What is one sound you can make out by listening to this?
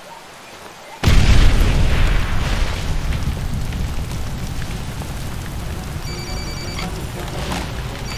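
Wind blows strongly outdoors.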